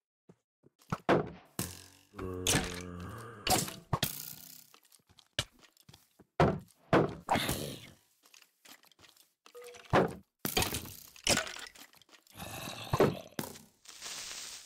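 Sword blows thud sharply, again and again.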